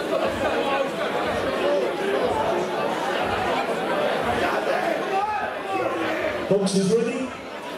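A crowd cheers in a large hall.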